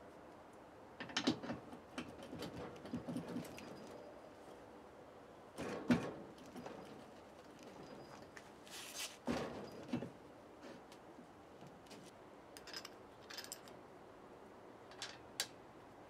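Metal parts clink and knock as a hub is fitted onto a spindle.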